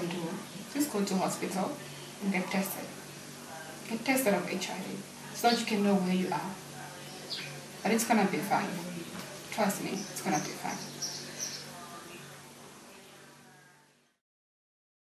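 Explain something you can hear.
A young woman speaks softly and calmly nearby.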